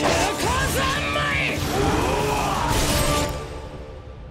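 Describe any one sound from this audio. A young man shouts with effort.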